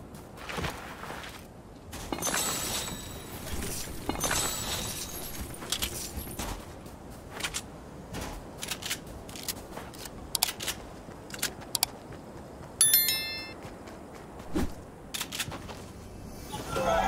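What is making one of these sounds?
Quick footsteps run over sand.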